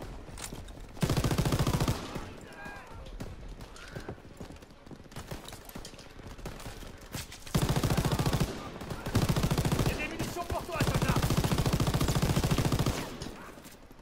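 A heavy machine gun fires loud rapid bursts.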